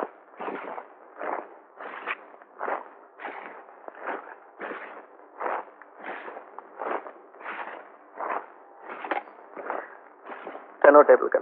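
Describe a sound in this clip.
A telephone rings repeatedly.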